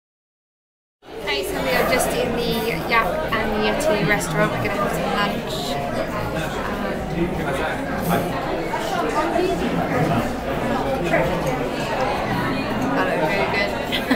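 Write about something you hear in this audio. A young woman talks casually close to the microphone.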